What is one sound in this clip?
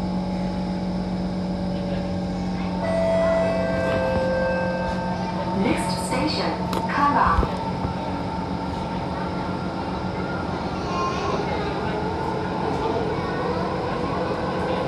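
A train rumbles and rattles as it moves along the track.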